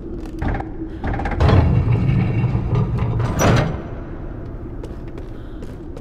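Small footsteps tap on wooden planks.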